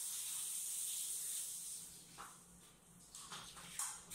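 A broom brushes across a hard floor in short strokes.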